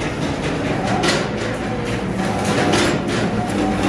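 A spot welder crackles and snaps in short bursts.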